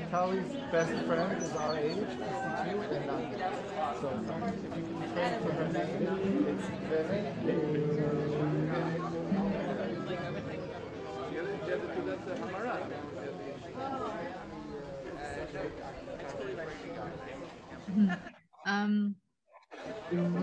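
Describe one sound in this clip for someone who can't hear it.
A crowd of men and women chatter and sing outdoors, heard through an online call.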